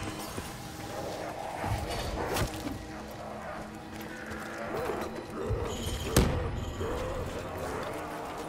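Zombies growl and groan nearby.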